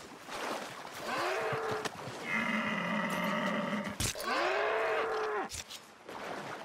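An elk bellows loudly in long, wavering calls.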